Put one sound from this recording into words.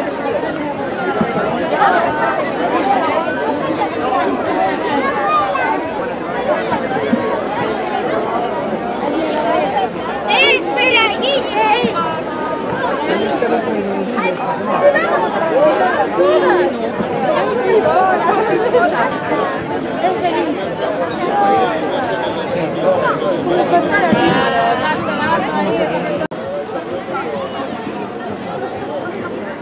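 A large crowd of men and women chatter loudly all around outdoors.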